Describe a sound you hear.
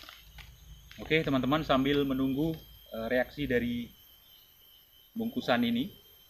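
A man speaks calmly and closely, in short phrases.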